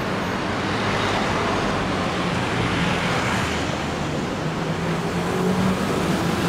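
Car engines hum as traffic passes along a city street.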